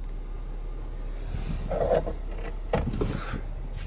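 A hand brushes over a seat.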